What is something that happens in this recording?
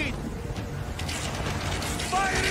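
A volley of arrows whooshes through the air.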